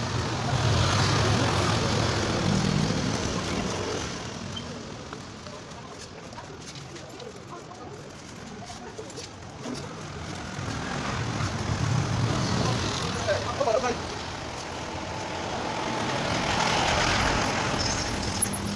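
A trowel scrapes and smooths wet cement.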